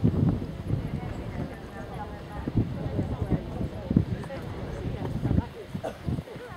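A horse's hooves thud softly on grass at a trot.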